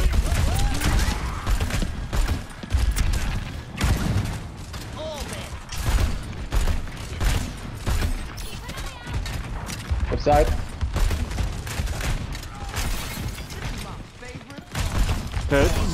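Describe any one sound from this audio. A grenade launcher fires with heavy thumps.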